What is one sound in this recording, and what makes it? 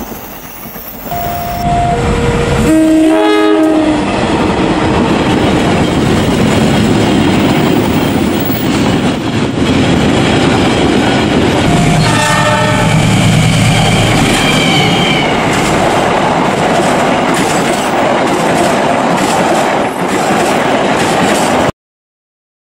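A train rumbles and clatters loudly along the rails close by.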